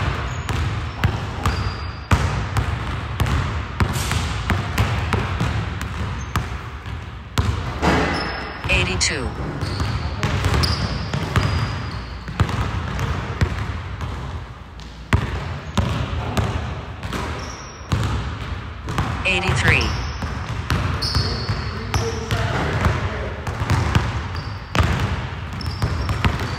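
A basketball bounces on a wooden court in a large echoing gym.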